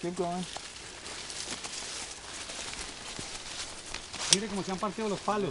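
Footsteps crunch through leaves and brush outdoors.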